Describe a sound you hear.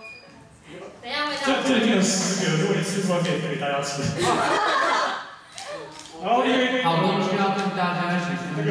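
A man speaks cheerfully through a microphone.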